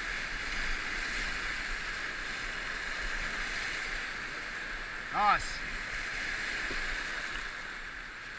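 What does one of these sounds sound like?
Whitewater rapids roar and churn steadily close by.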